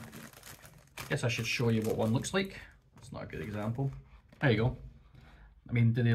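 A crisp packet crinkles and rustles.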